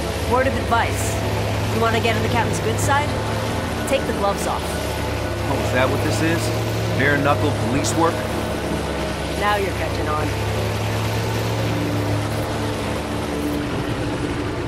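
An airboat engine drones steadily.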